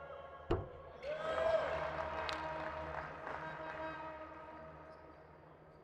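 A crowd cheers loudly after a free throw.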